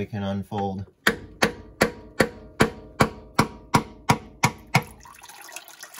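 A screwdriver taps sharply against metal in a quick, even rhythm.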